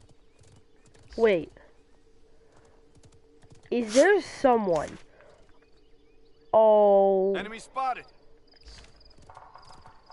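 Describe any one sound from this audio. A horse gallops with hooves thudding on grass.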